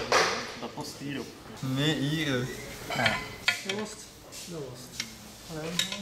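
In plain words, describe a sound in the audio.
Metal tools clink against an engine part.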